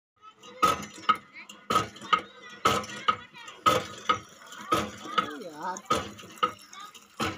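A hand pump clanks and squeaks rhythmically as its handle is worked.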